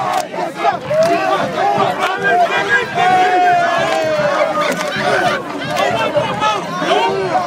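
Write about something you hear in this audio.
Hands clap among the crowd.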